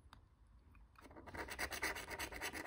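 A plastic scraper scratches rapidly across a card.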